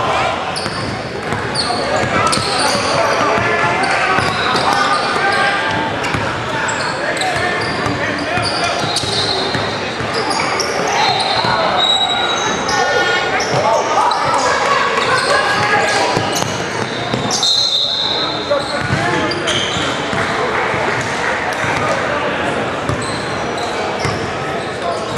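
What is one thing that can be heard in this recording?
A crowd of spectators chatters throughout in a large echoing gym.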